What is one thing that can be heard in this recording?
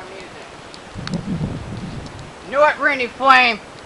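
A teenage boy speaks loudly and animatedly close by.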